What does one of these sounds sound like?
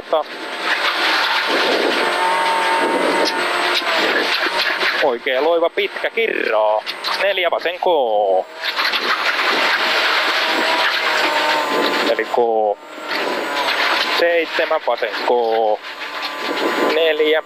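A rally car engine roars loudly, revving up and down through the gears.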